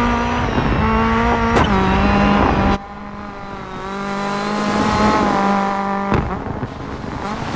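A rally car engine revs hard and changes gear.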